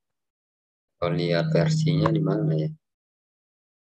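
A young man speaks briefly through an online call microphone.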